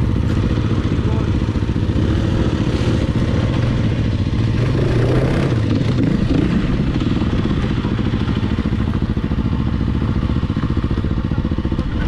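A dirt bike engine putters and revs up close.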